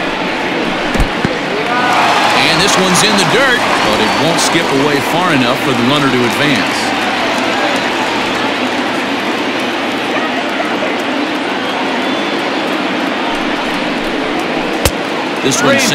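A pitched ball smacks into a catcher's mitt.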